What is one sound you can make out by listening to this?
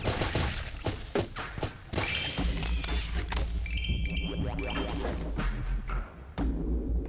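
Rapid gunfire from a video game crackles.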